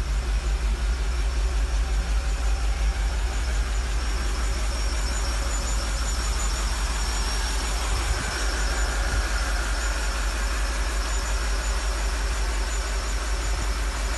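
An engine idles with a steady low rumble.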